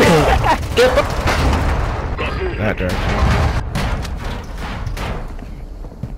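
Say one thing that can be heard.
A truck engine roars as the vehicle bounces over rough ground.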